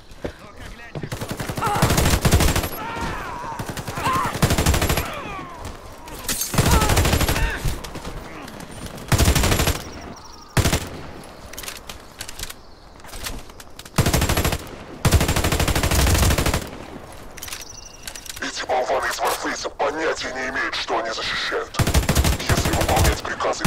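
Rifle shots fire in loud bursts.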